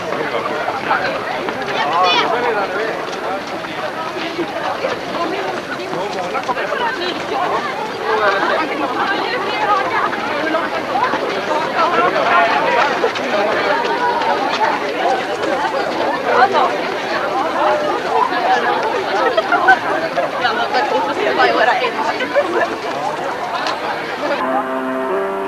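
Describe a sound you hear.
A crowd of runners chatters and calls out close by.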